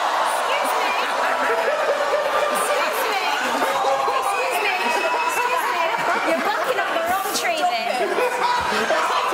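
A large crowd cheers and laughs in a big hall.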